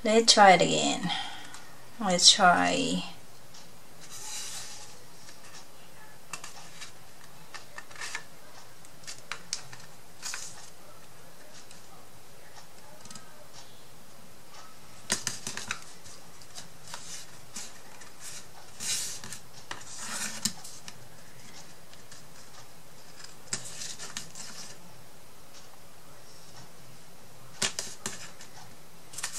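Fingers scrape and tap against a small wooden box.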